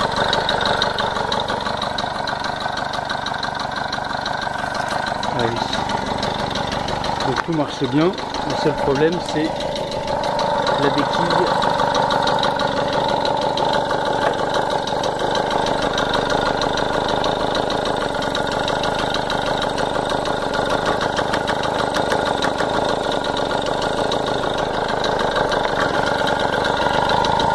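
A two-stroke moped engine idles through an expansion exhaust.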